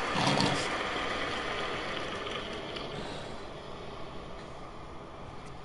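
A crowd applauds and cheers, slowly fading.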